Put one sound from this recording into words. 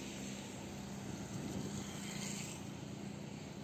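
A motorcycle passes close by.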